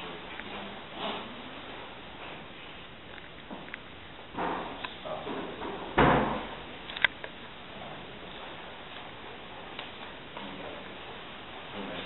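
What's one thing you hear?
Cloth and flowers rustle softly close by.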